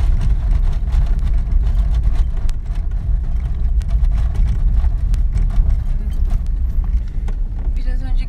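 Tyres roll over a rough road with a low, steady roar.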